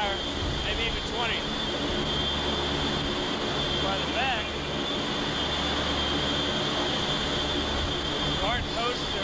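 A ship's engine hums low and steady.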